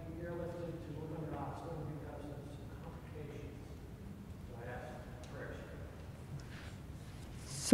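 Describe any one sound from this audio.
An elderly woman speaks calmly through a microphone in a large echoing hall.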